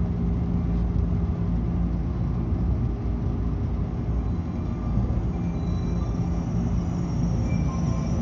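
The train slows to a stop.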